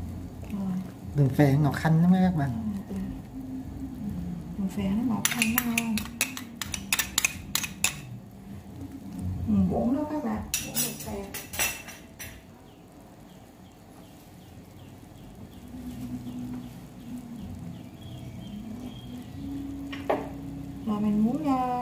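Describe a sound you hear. A pot of broth bubbles gently.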